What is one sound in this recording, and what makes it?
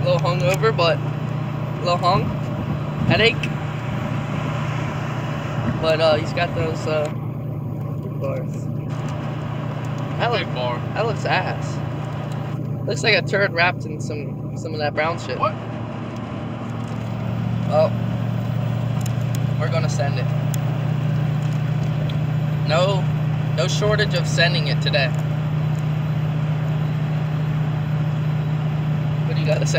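A truck engine hums steadily inside the cab.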